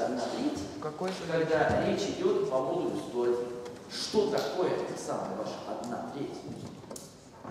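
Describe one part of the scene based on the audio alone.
A man lectures aloud.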